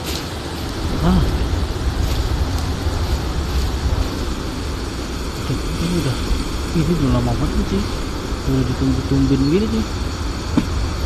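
A man talks into a microphone in a casual manner.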